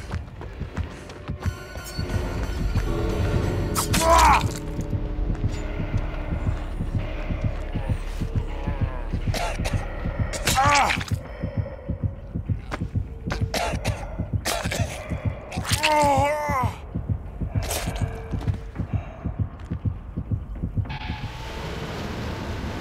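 A heartbeat thumps quickly and steadily.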